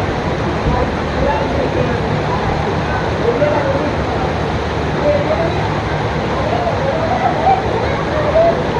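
Children shout and chatter in the distance.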